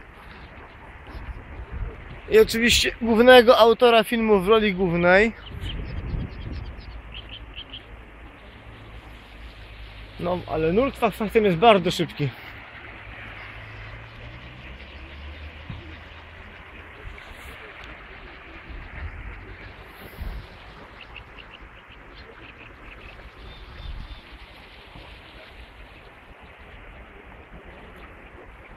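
Floodwater rushes steadily in a river.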